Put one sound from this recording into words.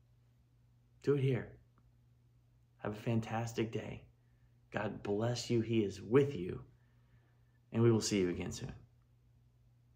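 A middle-aged man speaks calmly and close to a microphone, in short phrases.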